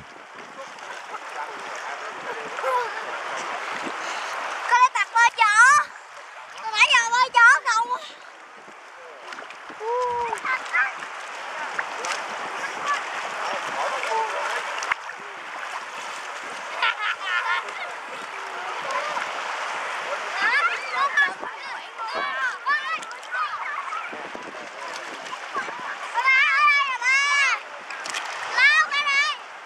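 Water splashes and laps around a swimmer.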